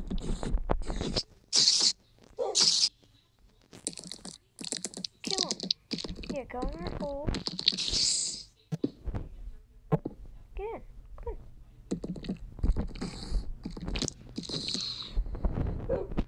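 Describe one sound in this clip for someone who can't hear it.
A spider hisses and chitters repeatedly.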